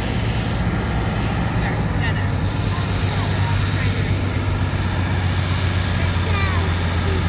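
A tractor engine roars loudly under heavy load.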